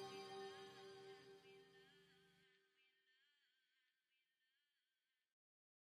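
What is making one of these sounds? A singer's voice holds a wavering note through a microphone and slowly fades.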